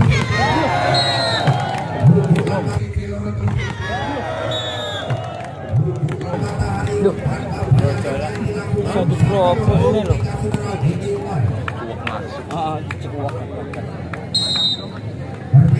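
A referee's whistle blows short, sharp blasts.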